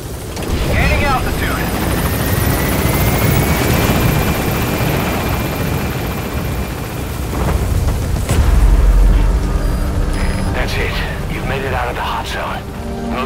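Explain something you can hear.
A helicopter's engine and rotors roar steadily.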